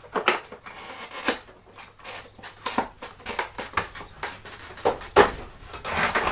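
Plastic parts click and knock.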